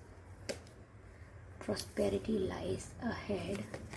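A card is laid down on a wooden table with a soft tap.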